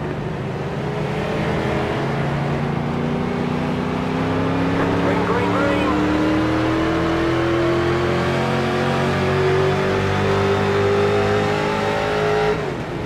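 A racing car engine roars steadily, its pitch slowly rising as it speeds up.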